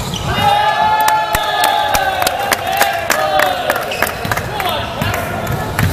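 Young men shout and cheer in an echoing hall.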